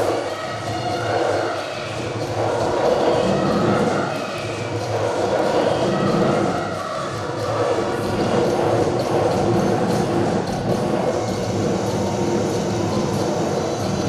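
A huge crowd sings together outdoors.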